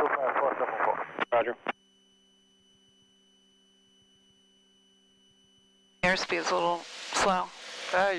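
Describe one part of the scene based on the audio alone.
A young woman speaks over a headset intercom.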